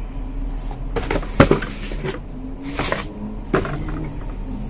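Cardboard rustles and thumps as a box is handled.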